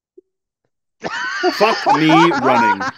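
A group of young men and a woman laugh loudly over an online call.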